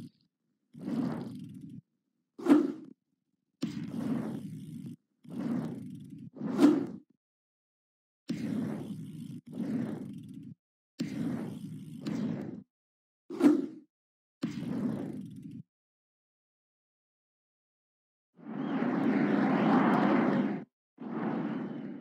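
Bicycle tyres roll over a dirt and wooden track.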